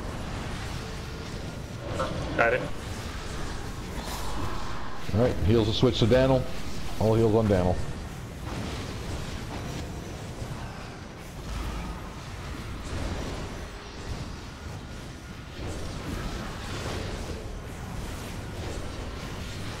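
Magic spells whoosh and crackle in a battle.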